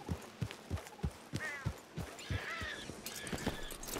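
A horse's hooves clop on soft ground.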